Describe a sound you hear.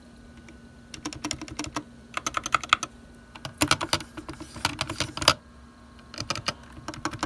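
Keyboard keys clack in quick bursts as fingers press them.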